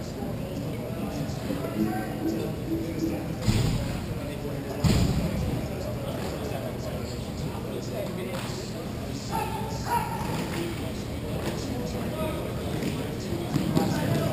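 Skate wheels roll and scrape across a hard floor in a large echoing hall.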